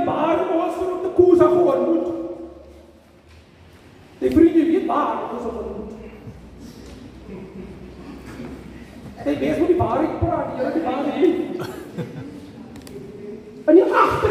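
A middle-aged man speaks with animation into a microphone in an echoing hall.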